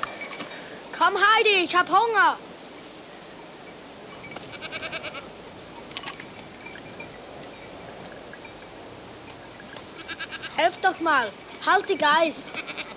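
A goat bleats loudly nearby.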